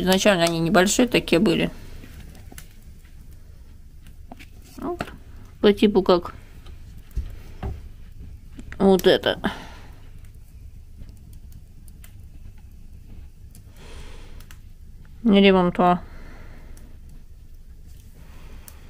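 A wood fire crackles softly.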